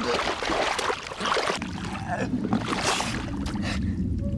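Wet mud squelches and splashes.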